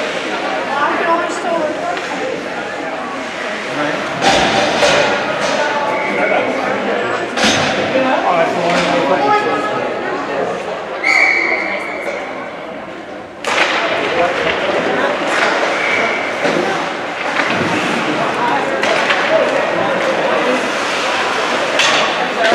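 Spectators chatter nearby.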